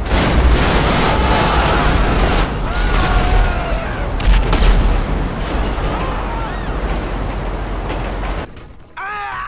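Heavy metal vehicles crash and clatter.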